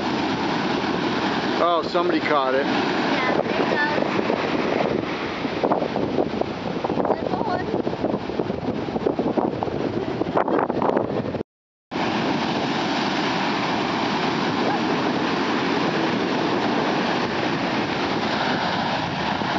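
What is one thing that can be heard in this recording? Ocean waves crash and roar steadily onto a shore.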